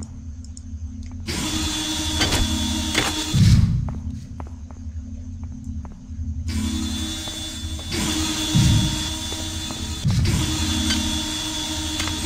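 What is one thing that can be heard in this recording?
A low machine hum drones steadily in an enclosed metal space.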